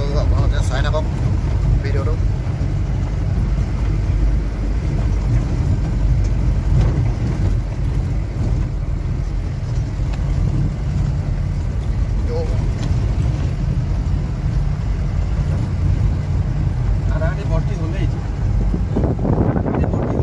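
A vehicle engine rumbles steadily from inside the car.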